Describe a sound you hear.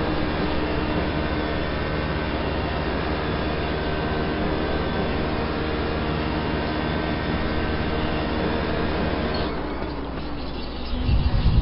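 A racing car engine roars loudly and steadily, then drops off as it slows.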